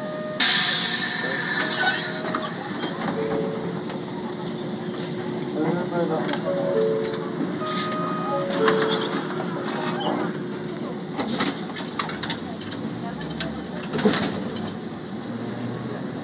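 A tram rumbles along its rails.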